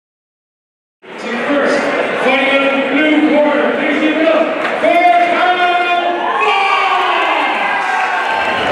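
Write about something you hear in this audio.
A man announces loudly and with drawn-out words through a loudspeaker in a large echoing hall.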